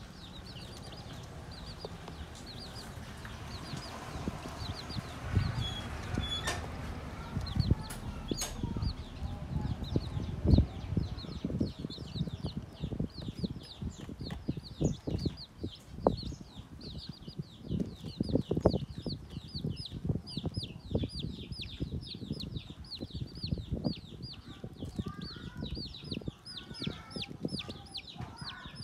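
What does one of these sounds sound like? Ducklings shuffle and bump about with soft thumps.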